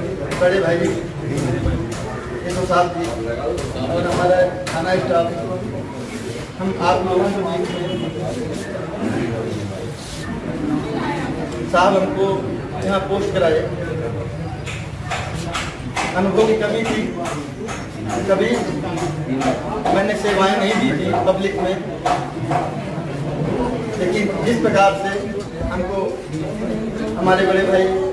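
A man speaks steadily into a handheld microphone, close by.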